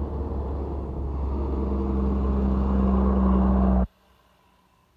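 A heavy truck engine rumbles loudly close by as the truck drives past.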